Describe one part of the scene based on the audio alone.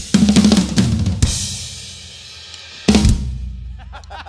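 A drummer plays a loud fill on drums and crashes the cymbals.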